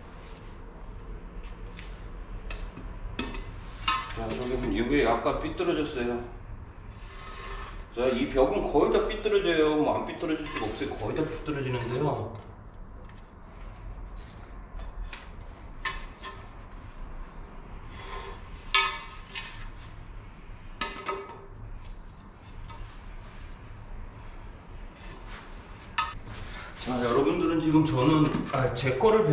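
A trowel scrapes adhesive on a floor.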